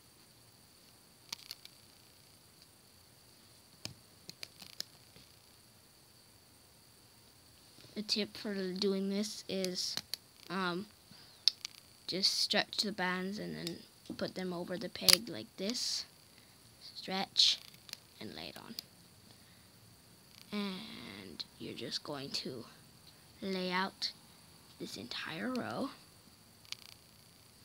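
Rubber bands snap and tap softly against plastic pegs.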